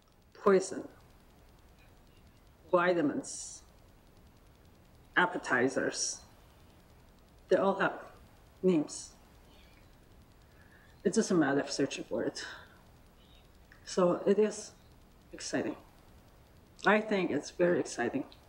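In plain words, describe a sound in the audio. A middle-aged woman speaks calmly into a microphone, with pauses between phrases.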